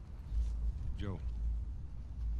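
A man speaks a short word quietly, close by.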